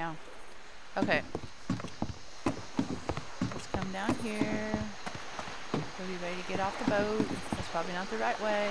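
Footsteps thud on a wooden deck.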